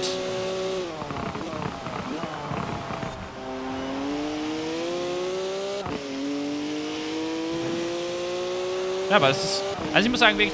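A sports car engine revs hard, rising in pitch through the gears.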